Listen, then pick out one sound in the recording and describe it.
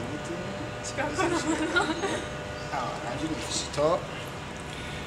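A young woman laughs excitedly close by.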